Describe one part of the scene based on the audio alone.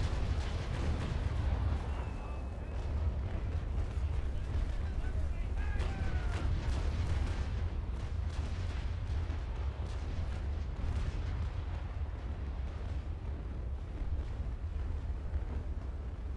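Waves wash against a wooden ship's hull.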